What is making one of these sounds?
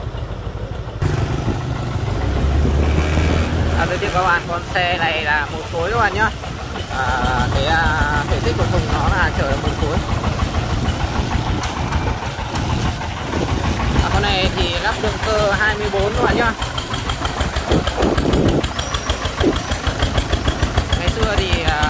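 A heavy truck engine chugs and rattles close by.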